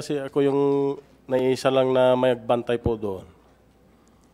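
A man speaks loudly and with emphasis into a microphone.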